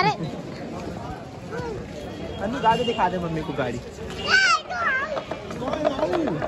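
Men and women talk loudly nearby in a busy outdoor crowd.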